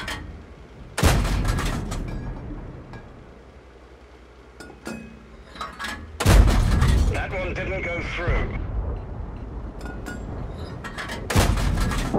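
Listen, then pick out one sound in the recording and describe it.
A tank cannon fires with a loud boom that echoes away.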